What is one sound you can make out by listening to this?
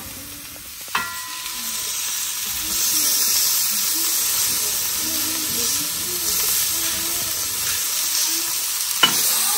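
Mushrooms sizzle in a hot pan.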